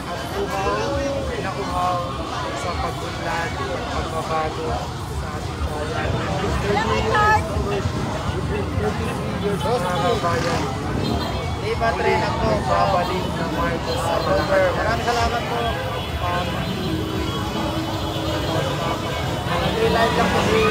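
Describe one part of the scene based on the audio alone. A large outdoor crowd cheers and shouts excitedly close by.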